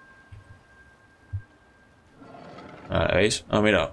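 A heavy stone lid scrapes open.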